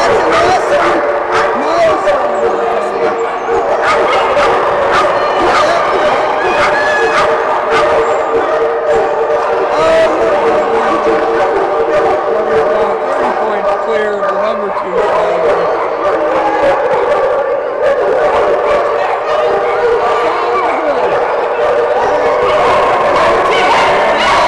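A crowd chatters throughout a large echoing hall.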